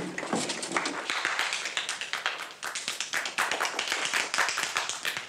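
A small group of people applaud steadily close by.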